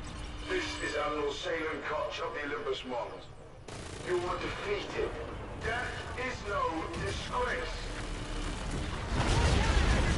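A man speaks calmly and firmly over a radio.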